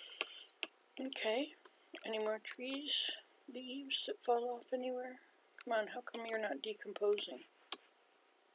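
An elderly woman speaks calmly close to a microphone.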